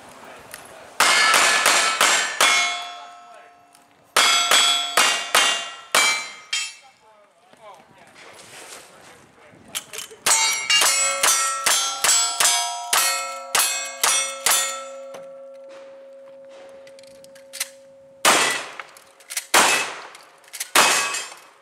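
Pistol shots crack in quick bursts outdoors.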